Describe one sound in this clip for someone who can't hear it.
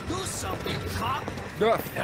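A man shouts urgently.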